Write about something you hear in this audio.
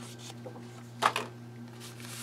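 A plastic tube knocks as it is set down on a table.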